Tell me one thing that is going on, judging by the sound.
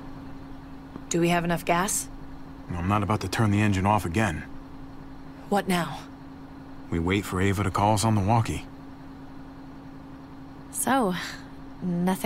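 A young woman speaks softly.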